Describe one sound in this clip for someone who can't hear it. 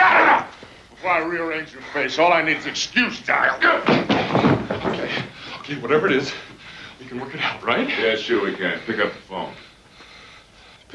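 A second man answers.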